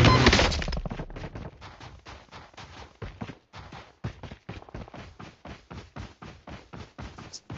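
Heavy boots run quickly over dirt.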